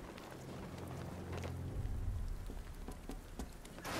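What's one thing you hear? A heavy landing thuds onto a metal floor.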